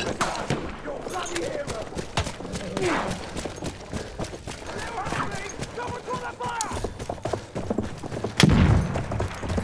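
Gunshots crack sharply in the distance, on and off.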